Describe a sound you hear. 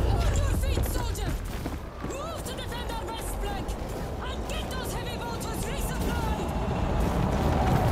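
A woman shouts orders.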